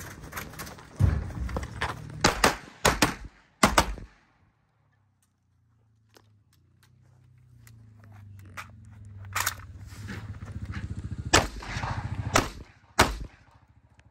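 Pistol shots crack loudly outdoors in quick bursts.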